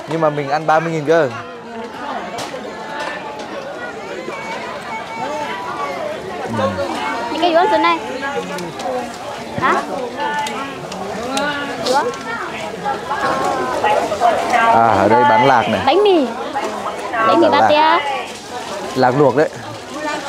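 A crowd of men and women chatter all around, close by.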